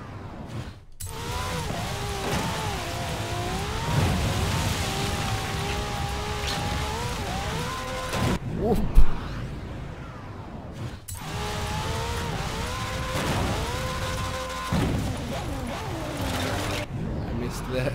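A car engine revs up and down as a racing car speeds along.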